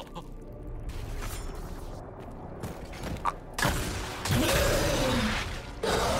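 A magic blast crackles and bursts.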